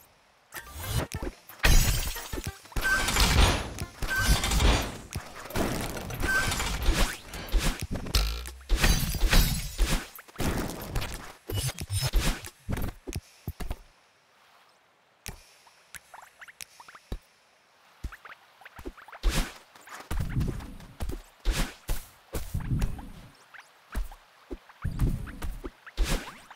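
Quick electronic whooshes and blips sound in rapid bursts.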